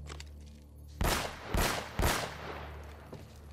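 Pistol shots ring out three times in quick succession, echoing.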